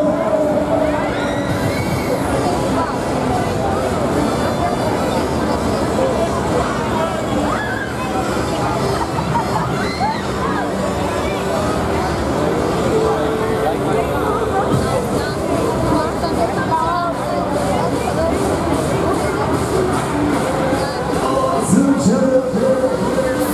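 A fairground ride whooshes and rumbles as it swings through the air.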